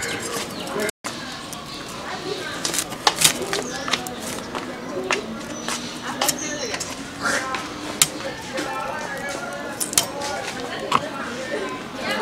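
A blade snaps and cuts through crisp cauliflower stalks.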